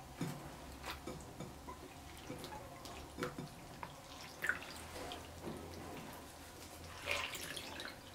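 Wet shredded fish squelches and drips as a hand squeezes it.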